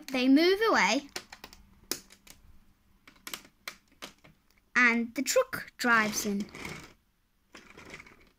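A plastic toy truck rolls and clatters over plastic bricks.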